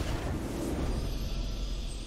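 A victory fanfare plays in a video game.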